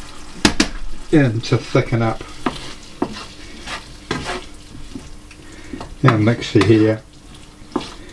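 A wooden spoon stirs and scrapes food in a pan.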